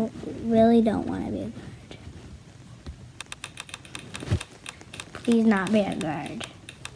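A young boy speaks close to a microphone with animation.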